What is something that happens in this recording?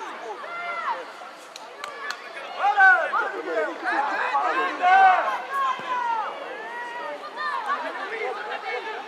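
Young children shout and call out to each other outdoors.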